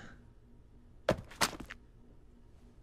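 A young man speaks casually.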